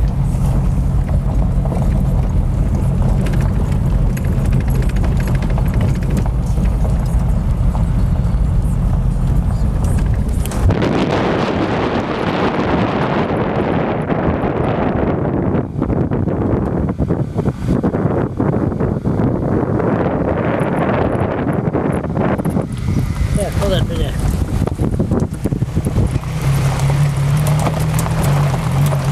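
Tyres roll and crunch over a gravel road.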